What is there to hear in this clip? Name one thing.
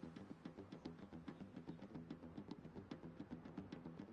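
Horses gallop, hooves pounding on dirt.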